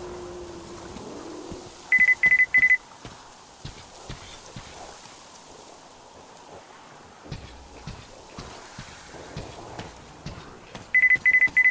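Footsteps crunch on gravel and snow.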